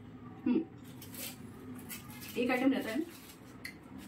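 Foil wrapping crinkles as a young woman unwraps food.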